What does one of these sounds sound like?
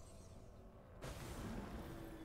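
A magical whoosh swells up.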